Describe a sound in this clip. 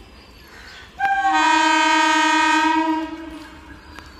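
A train horn blares loudly from a distance.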